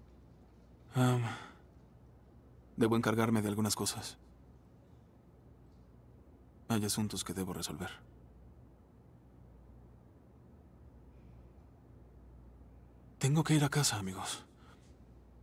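A young man speaks in short bursts, close by.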